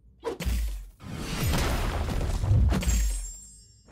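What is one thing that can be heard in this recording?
A short burst of rubble crashes down.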